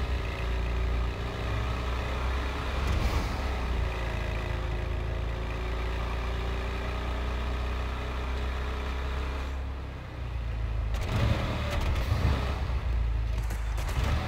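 A truck engine rumbles steadily as it drives along a road.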